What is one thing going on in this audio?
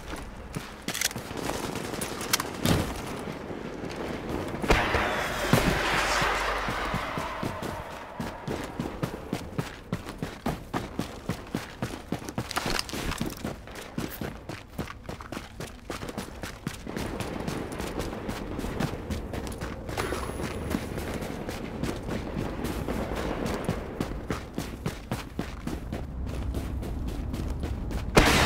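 Footsteps tread quickly over hard ground and stairs.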